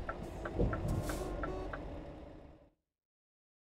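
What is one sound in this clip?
A truck engine rumbles steadily, then cuts out.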